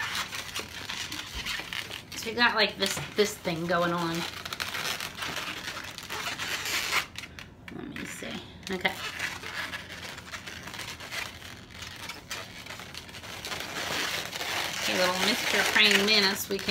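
Rubber balloons squeak and rub as they are twisted and handled.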